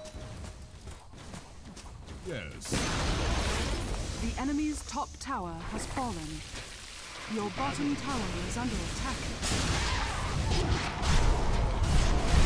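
Magic spells whoosh and burst in a fantasy battle game.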